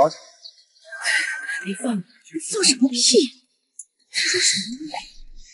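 A middle-aged woman speaks sharply and scolds.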